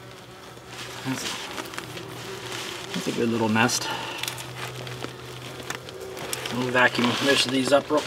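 Fibreglass insulation rustles as it is handled.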